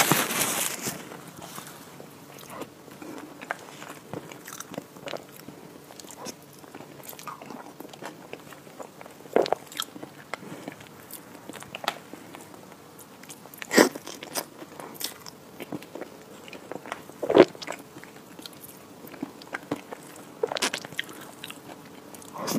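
A woman chews food wetly and smacks her lips close to a microphone.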